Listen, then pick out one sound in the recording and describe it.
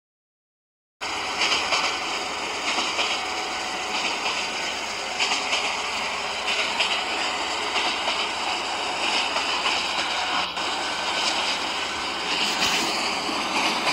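A train engine rumbles steadily as a train rolls along the tracks.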